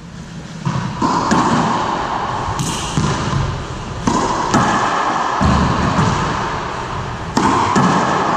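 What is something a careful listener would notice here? A racquetball smacks off racquets and walls, echoing loudly in a large bare hall.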